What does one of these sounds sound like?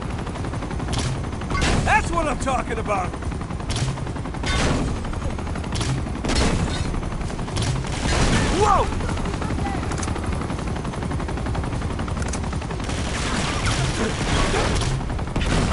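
A grenade launcher fires with heavy thuds.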